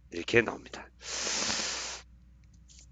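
A sheet of paper slides and rustles.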